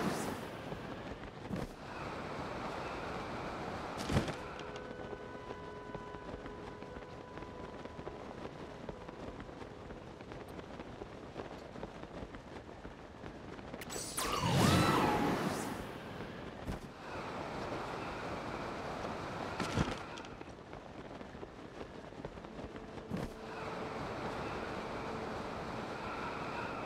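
Wind rushes steadily past while gliding high in the air.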